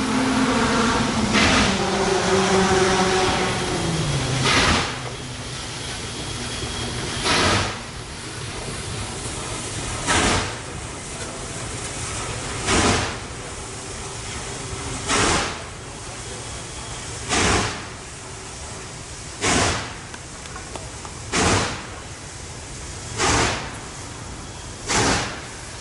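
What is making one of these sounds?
A long train rumbles steadily past on the tracks.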